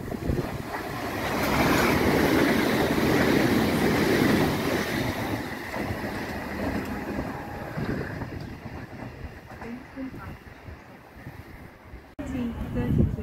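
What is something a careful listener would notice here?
A train rumbles past on the tracks close by and fades into the distance.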